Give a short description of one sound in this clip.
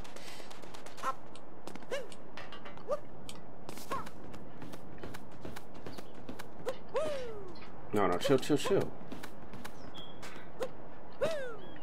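Short cartoonish sound effects chirp and swoop as a game character jumps and climbs.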